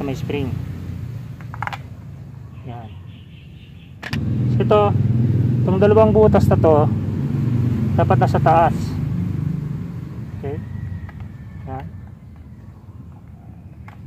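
A small cap scrapes and clicks as it is screwed and unscrewed on a motorcycle engine.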